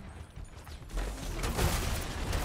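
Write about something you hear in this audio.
A game weapon fires rapidly.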